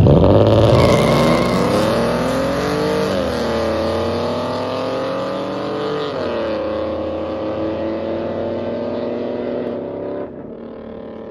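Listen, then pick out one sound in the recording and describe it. Race car engines roar loudly as the cars speed away.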